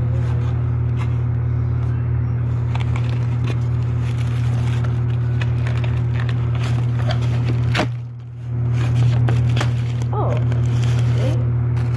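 A cardboard box scrapes and rustles.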